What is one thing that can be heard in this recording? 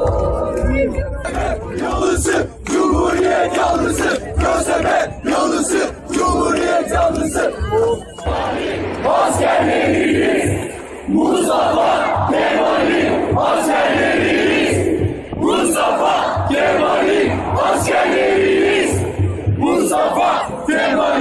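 A large outdoor crowd chants and cheers loudly.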